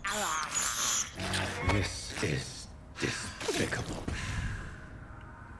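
A man speaks in a low, grim voice.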